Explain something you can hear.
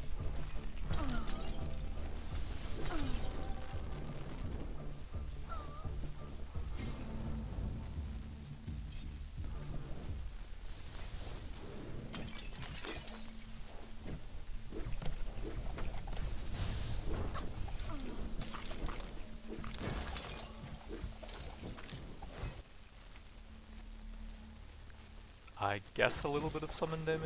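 Low, steady game music plays.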